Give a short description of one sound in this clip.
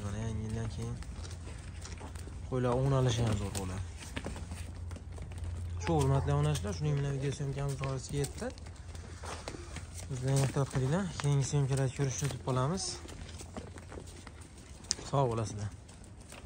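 Hooves shuffle on dry dirt.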